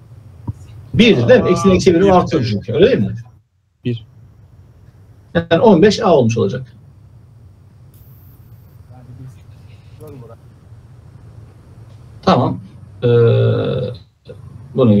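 A man explains calmly over an online call, speaking in short bursts.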